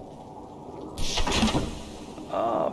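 A heavy metal door slides open with a loud whoosh.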